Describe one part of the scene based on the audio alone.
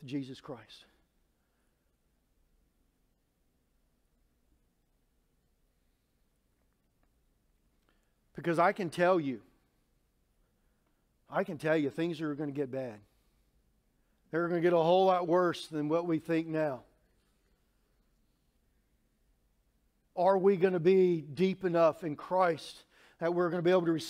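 A middle-aged man speaks with emphasis through a microphone, pausing between phrases.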